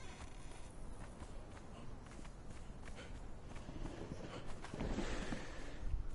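Footsteps thud quickly on sand as a man runs.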